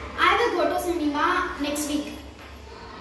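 A girl speaks clearly and calmly, close by.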